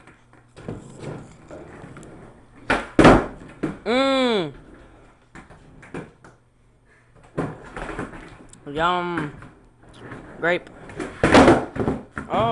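Skateboard wheels roll across a wooden floor indoors.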